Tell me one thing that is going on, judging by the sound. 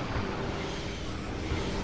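An energy beam hums and crackles.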